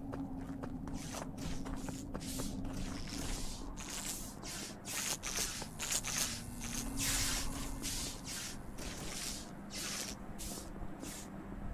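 Footsteps patter quickly and evenly.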